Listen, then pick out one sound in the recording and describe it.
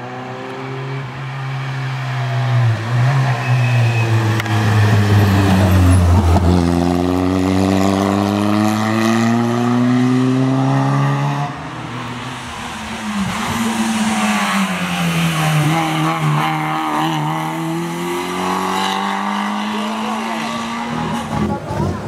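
A rally car engine revs hard and roars past, shifting gears.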